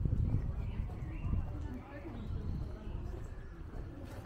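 Two young women chat quietly as they walk past.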